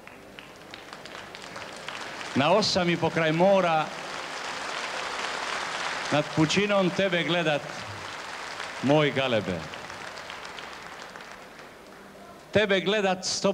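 A large crowd cheers and murmurs in the open air.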